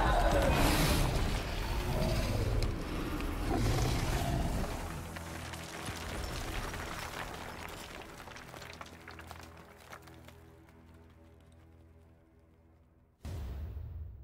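A huge fleshy mass crumbles and dissolves with a deep, fading rumble.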